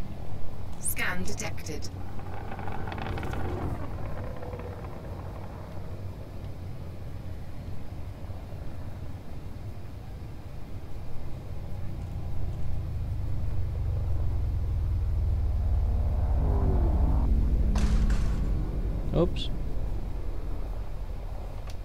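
A spaceship engine hums low and steady, swelling louder as the ship glides in to dock.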